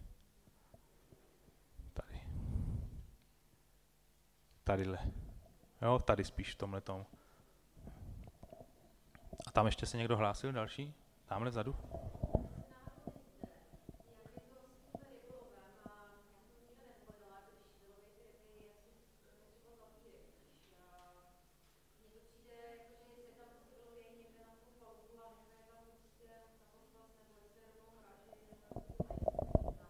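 A man speaks into a microphone over loudspeakers in a large echoing hall.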